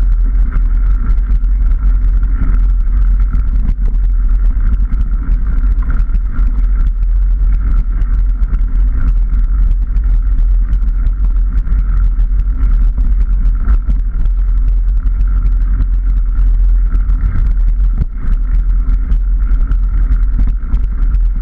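A motorbike engine runs loudly at a steady pace.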